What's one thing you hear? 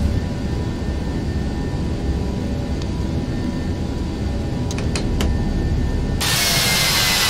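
Jet engines hum low and steady, heard from inside a cockpit.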